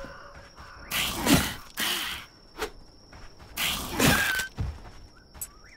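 Weapon blows land on a creature with heavy thuds.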